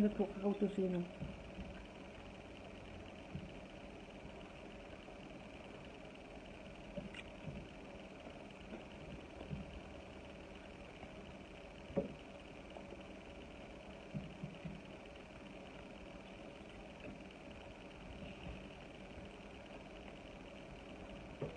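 Food crackles softly as fingers pull it apart.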